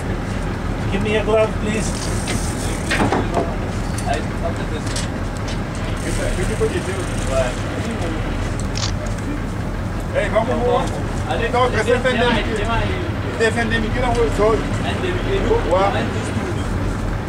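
Men talk and call out with animation close by, outdoors.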